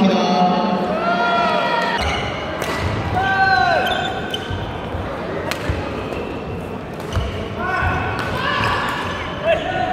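Sneakers squeak sharply on a hard floor.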